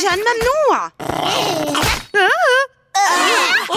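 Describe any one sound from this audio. A baby shouts angrily.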